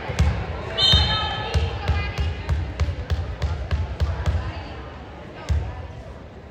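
A volleyball bounces repeatedly on a hard floor in an echoing hall.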